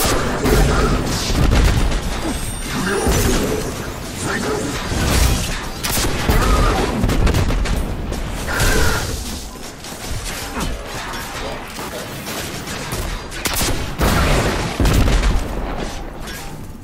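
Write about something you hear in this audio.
Explosions crackle with showers of sparks.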